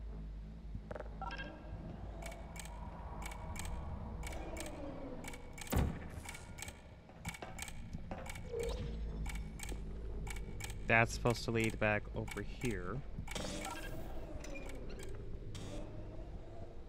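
A timer ticks steadily.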